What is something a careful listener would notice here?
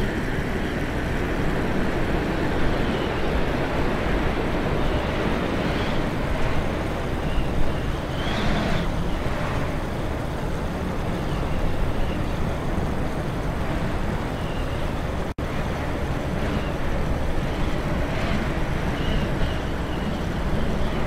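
Wind rushes past a small plane.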